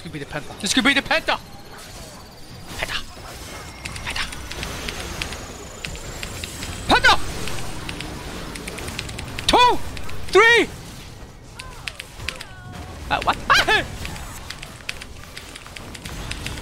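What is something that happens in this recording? Video game spell effects burst, zap and crackle in rapid bursts.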